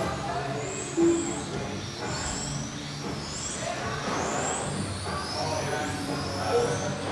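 Small electric model cars whine high, rising and falling as they race around a track.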